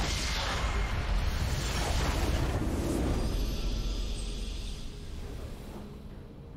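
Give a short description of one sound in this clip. A loud rumbling explosion bursts and slowly fades.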